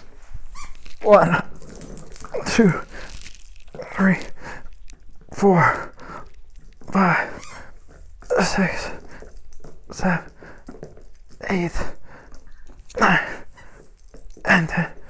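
A young man breathes out hard with each exercise movement.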